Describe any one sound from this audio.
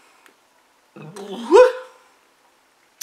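A man makes a short vocal sound close by.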